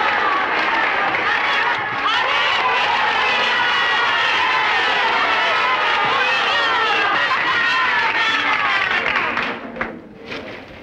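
A large crowd of women cheers and shouts loudly.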